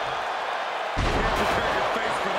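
A body slams heavily onto the wrestling mat with a loud thud.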